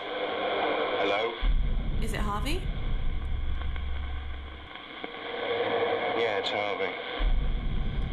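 A young man speaks into a headset microphone with animation, close by.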